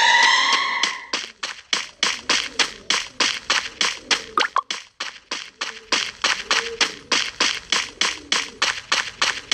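A gun fires in rapid, steady bursts of shots.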